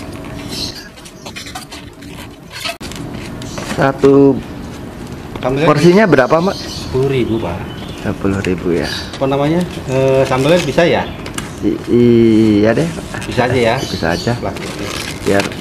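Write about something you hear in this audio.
Plastic containers rustle and tap as a man handles them.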